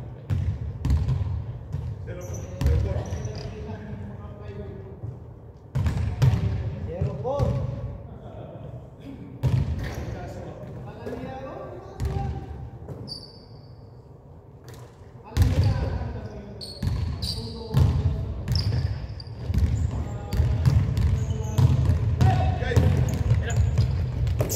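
Basketballs bounce on a wooden floor in a large echoing hall.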